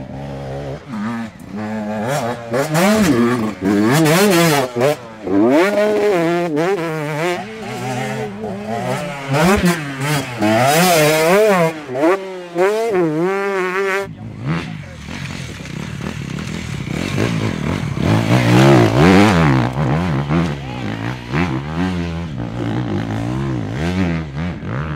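A dirt bike engine revs hard, rising and falling in pitch.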